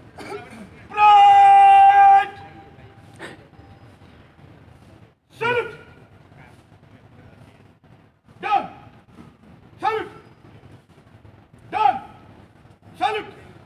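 A man shouts short drill commands loudly outdoors.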